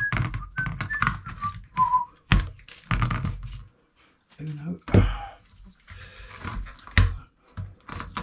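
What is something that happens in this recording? A knife cuts through card packaging.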